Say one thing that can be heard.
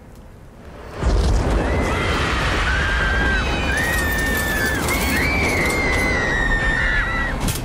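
Flames burst up with a loud whoosh and keep roaring.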